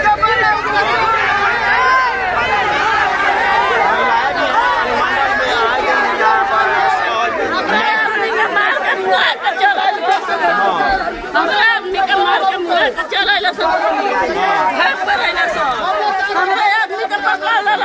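A crowd of women talks and shouts loudly outdoors.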